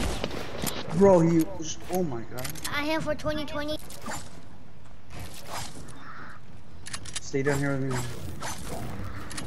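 A young boy talks with animation into a headset microphone.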